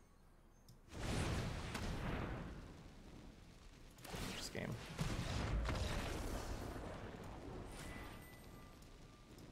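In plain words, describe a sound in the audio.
A man talks with animation into a microphone close by.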